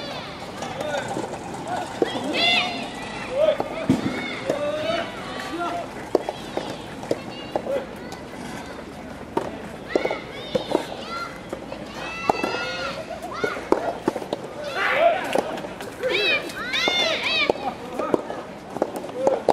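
A racket strikes a soft tennis ball.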